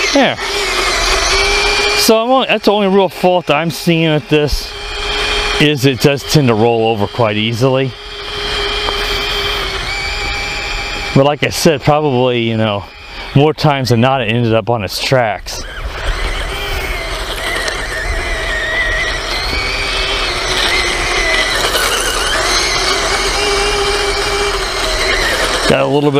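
A small toy car's electric motor whines as it drives.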